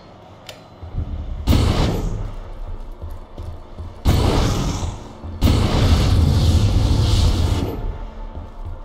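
A flamethrower roars in loud, rushing bursts.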